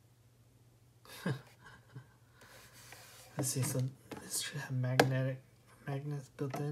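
Hard plastic knocks and rattles under handling.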